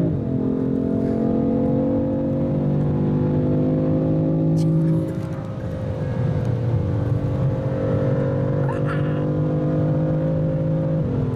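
A car engine roars steadily at high revs inside the cabin.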